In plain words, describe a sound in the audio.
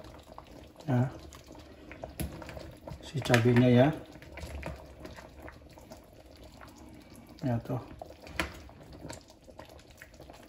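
A metal spoon clinks and scrapes against a pot.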